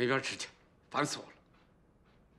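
A middle-aged man speaks nearby in an annoyed voice.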